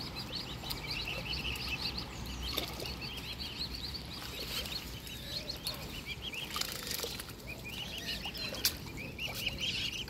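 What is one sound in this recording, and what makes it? Cygnets peep in quick, high chirps close by.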